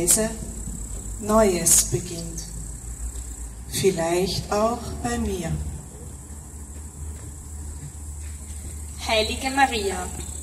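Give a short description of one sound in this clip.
A young woman speaks into a microphone outdoors, heard through a loudspeaker.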